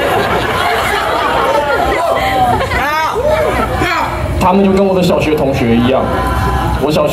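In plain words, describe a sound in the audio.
A young man sings through a microphone.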